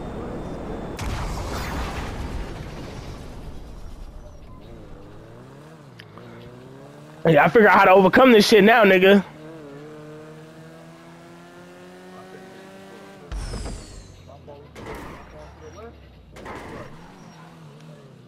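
A small car engine hums and revs.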